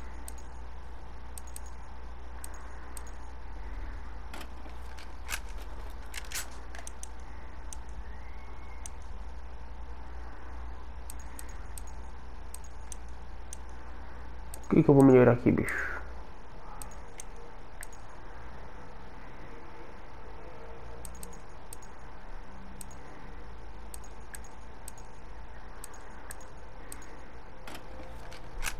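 Short menu clicks tick now and then as selections change.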